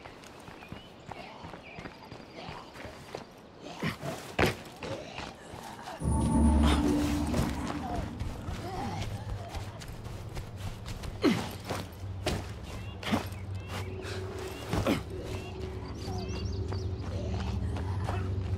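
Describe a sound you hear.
Footsteps run quickly over the ground.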